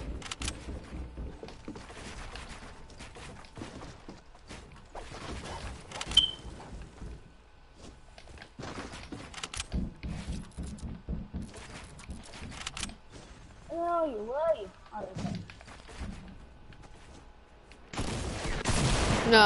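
Wooden walls and ramps snap into place with quick clacks.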